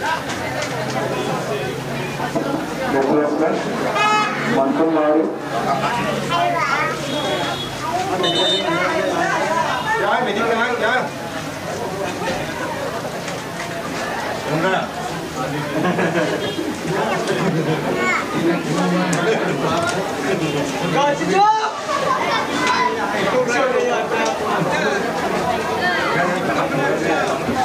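A large crowd of spectators chatters and shouts outdoors.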